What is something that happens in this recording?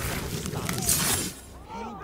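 A blade slashes through flesh with a wet tearing sound.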